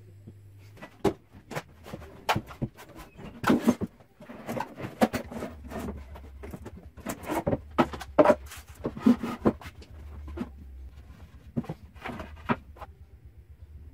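Wooden boards knock and thud on a metal bench.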